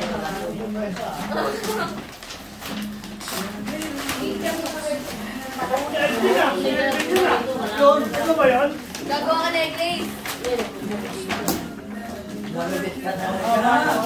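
Wrapping paper rustles and tears.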